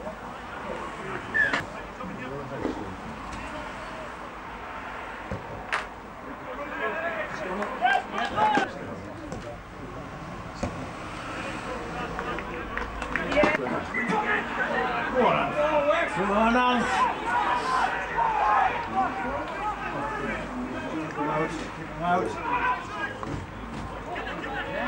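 Spectators call out and cheer from the touchline.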